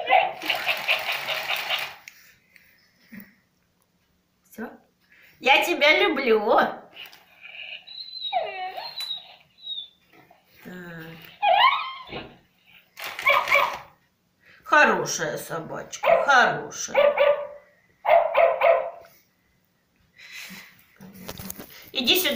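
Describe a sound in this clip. A toy dog plays squeaky electronic barks and sounds through a small speaker.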